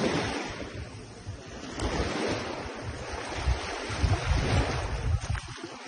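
Bare feet splash softly through shallow water.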